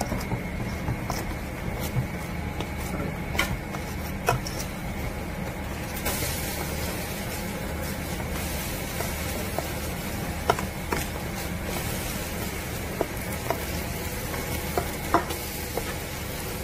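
A metal spoon scrapes and clinks against a metal bowl.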